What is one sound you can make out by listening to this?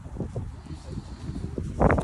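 A man talks nearby as he walks past.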